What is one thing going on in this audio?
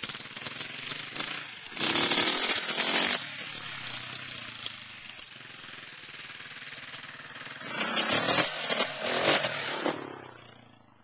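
A dirt bike engine revs and roars nearby, rising and falling.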